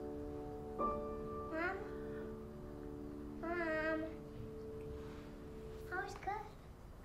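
A piano plays sustained chords.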